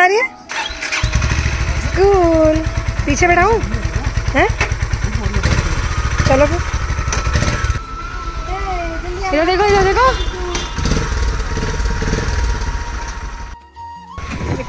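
A motorcycle engine idles with a steady, low throb.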